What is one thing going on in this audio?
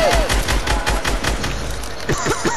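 A gun fires in rapid shots.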